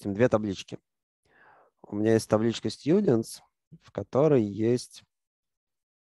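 A man speaks calmly into a close microphone.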